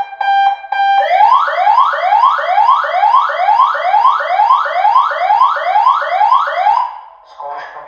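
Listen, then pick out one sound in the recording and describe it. An electronic siren yelps in fast rising sweeps.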